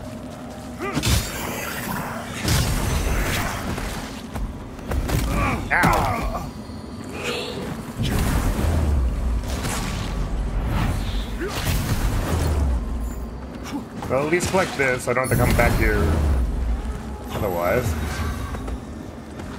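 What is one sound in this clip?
Heavy blows and crashes of game combat sound out again and again.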